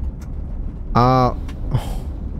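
A young man speaks briefly into a nearby microphone.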